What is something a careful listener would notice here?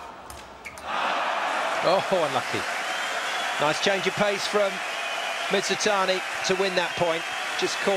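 A large crowd cheers and applauds loudly in an echoing hall.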